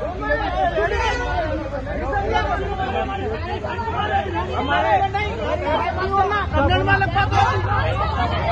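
A young man shouts angrily up close.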